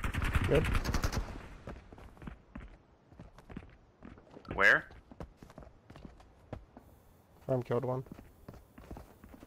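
Footsteps thud steadily on a hard floor in an echoing space.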